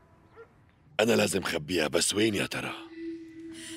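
An elderly woman speaks with animation nearby.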